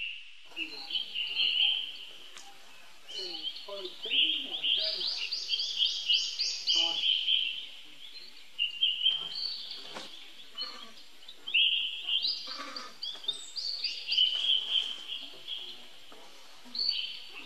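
Monkeys rustle through dry leaves on the ground.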